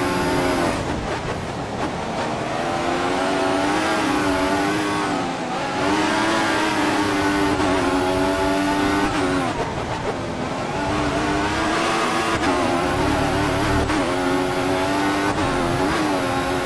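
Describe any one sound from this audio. A racing car engine screams at high revs, rising and dropping sharply as the gears shift.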